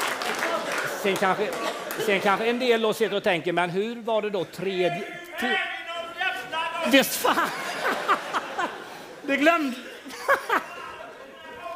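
A man speaks animatedly through a microphone to an audience.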